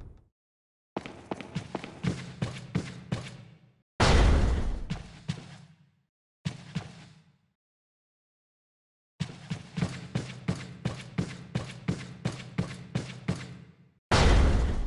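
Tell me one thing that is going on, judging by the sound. Footsteps tread steadily across a hard floor.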